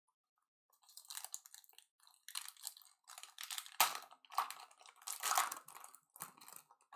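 A foil card wrapper crinkles and tears as it is opened.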